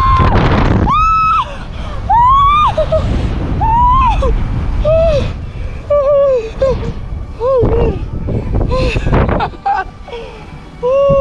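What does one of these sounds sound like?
A woman squeals and shrieks with excitement close by.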